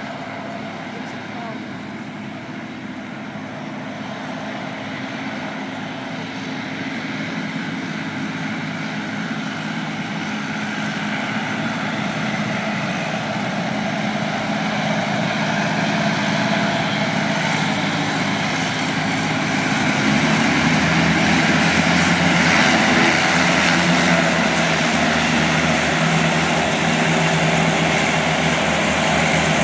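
A hovercraft's engines and ducted propellers roar louder as it approaches across the water and comes up onto a shingle beach.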